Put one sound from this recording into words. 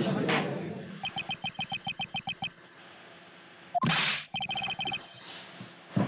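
Rapid electronic beeps tick in quick bursts.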